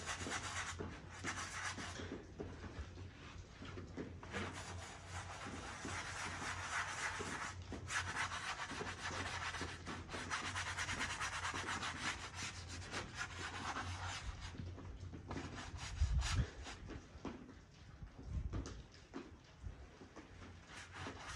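A brush scrubs and swishes across a board.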